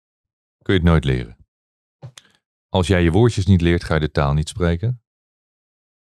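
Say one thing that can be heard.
A middle-aged man speaks calmly and close into a microphone.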